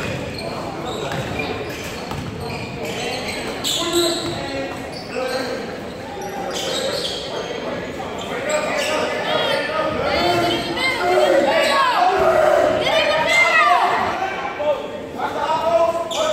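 Spectators talk and call out in the echoing hall.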